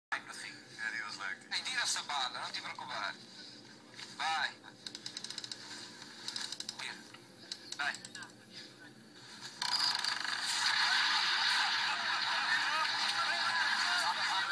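A small television loudspeaker plays a broadcast.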